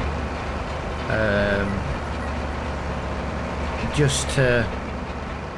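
A tractor engine drones steadily at a low pitch.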